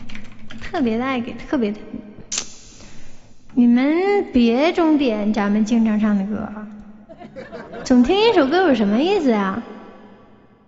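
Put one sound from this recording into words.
A young woman sings close into a microphone with reverb.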